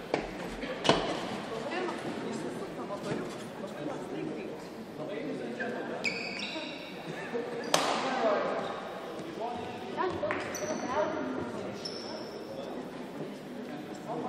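A shuttlecock is struck sharply by rackets in an echoing hall.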